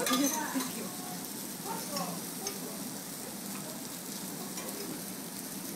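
Meat sizzles steadily on a hot griddle.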